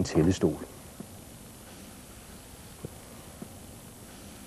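A drawknife scrapes and shaves wood with short knocks.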